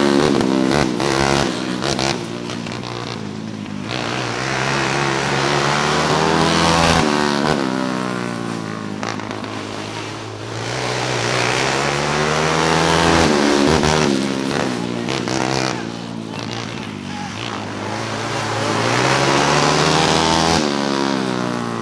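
Racing engines roar and whine loudly, rising and falling in pitch as cars speed past outdoors.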